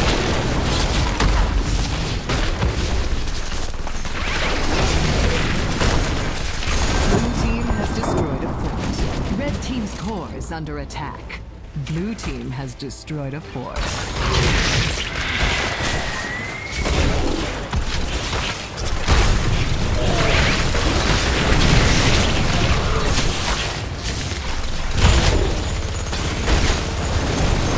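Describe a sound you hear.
Video game battle sound effects of spells and weapon hits crash and burst.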